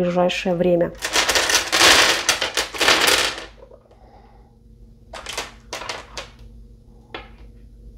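Small smooth stones clack and rattle together.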